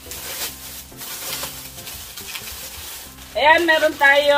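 Plastic bags rustle and crinkle up close.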